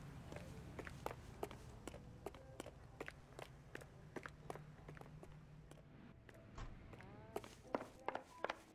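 Hard-soled shoes click steadily on pavement.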